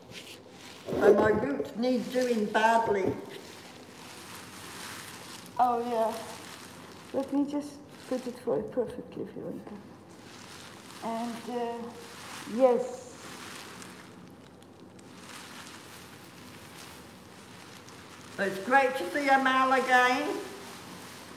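An elderly woman speaks through a face mask, close by, in short phrases.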